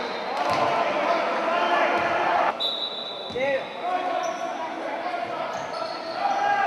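A crowd cheers and chatters in an echoing gym.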